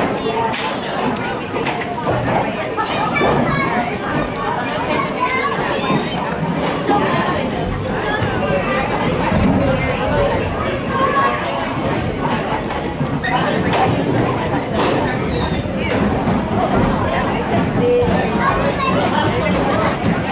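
Spectators close by chatter and call out outdoors.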